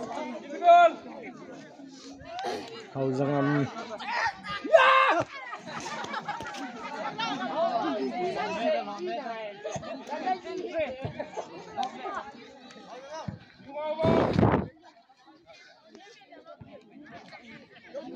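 A crowd of young people chatters and shouts outdoors.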